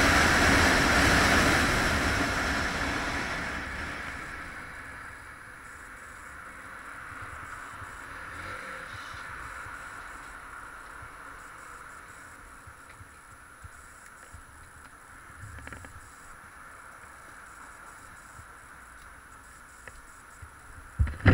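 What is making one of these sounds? A motorcycle engine hums and idles softly.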